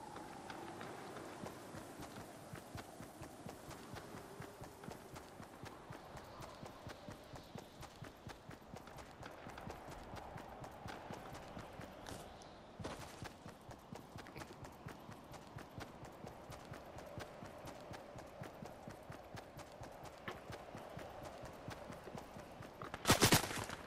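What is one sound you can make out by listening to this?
Quick footsteps patter steadily on grass.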